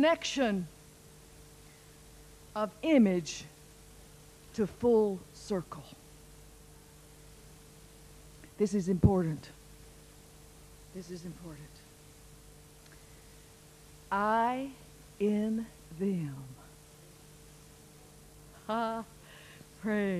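An older woman speaks slowly into a microphone with long pauses, heard through a loudspeaker.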